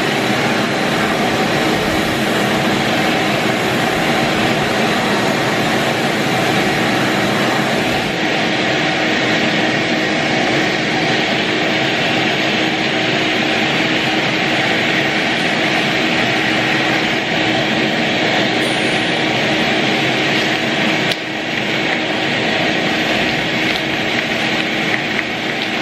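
A wet vacuum roars steadily as it sucks water off a floor.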